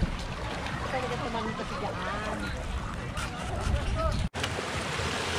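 Water laps gently against a rocky shore.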